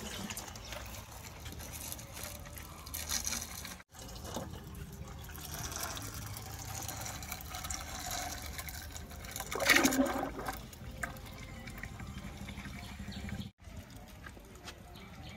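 A stick stirs and sloshes thick oil in a plastic bucket.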